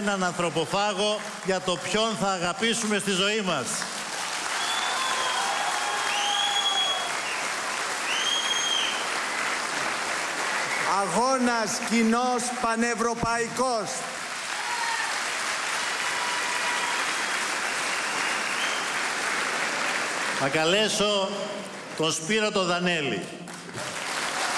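A man speaks into a microphone with animation, heard through loudspeakers in a large hall.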